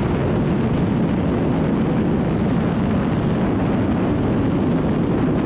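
A motorcycle engine roars steadily at high speed.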